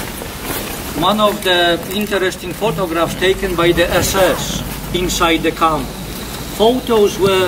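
A middle-aged man speaks calmly outdoors.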